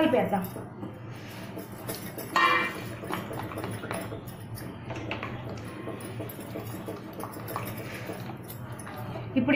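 A spoon stirs and scrapes inside a metal pot.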